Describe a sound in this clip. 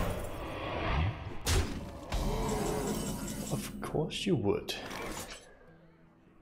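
A game chime and magical sound effects ring out.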